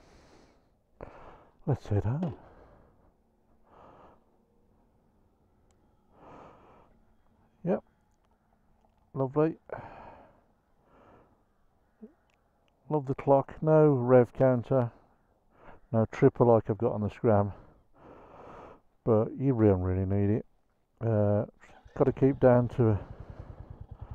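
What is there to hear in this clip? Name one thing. A man talks calmly and close up into a helmet microphone.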